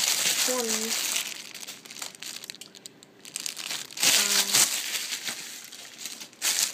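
Plastic wrappers crinkle and rustle close by.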